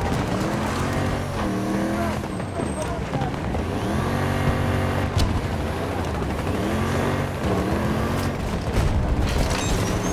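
A heavy vehicle's engine roars and rises and falls in pitch as it revs.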